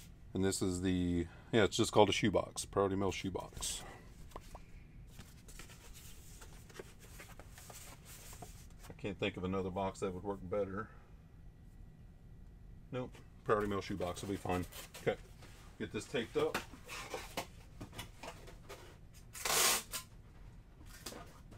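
Cardboard rustles and thumps as a box is handled.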